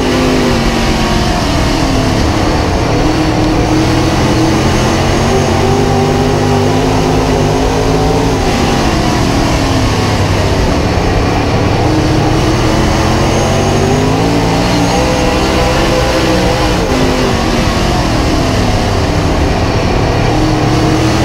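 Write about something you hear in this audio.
A race car engine roars loudly up close, its pitch rising and falling as the car speeds up and slows.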